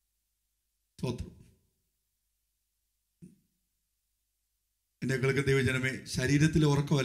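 A man speaks with pauses into a microphone, heard through a loudspeaker in a large room.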